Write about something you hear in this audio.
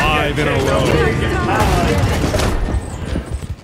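Magic blasts crackle and whoosh in quick bursts.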